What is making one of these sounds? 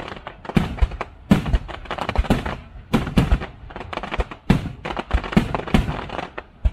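Fireworks burst with loud booms outdoors.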